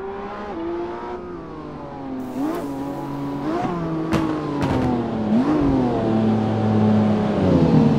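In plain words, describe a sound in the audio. A sports car engine roars as it approaches, shifting gears and growing louder.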